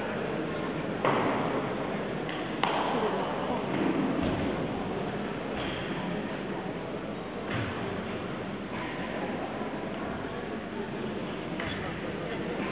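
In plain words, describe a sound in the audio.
Feet thud on a balance beam in a large echoing hall.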